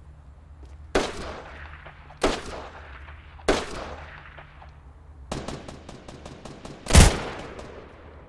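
Gunshots ring out loudly and echo.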